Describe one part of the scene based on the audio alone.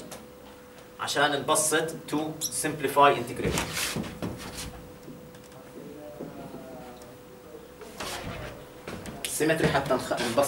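A middle-aged man lectures calmly.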